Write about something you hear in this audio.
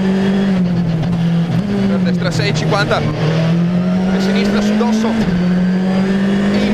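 A rally car engine roars loudly and steadily, its pitch dropping and climbing with gear changes.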